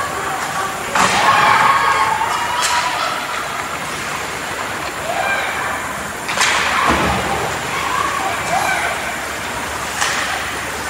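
Hockey sticks clack sharply against a puck now and then.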